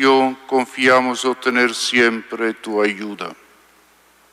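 An elderly man chants into a microphone.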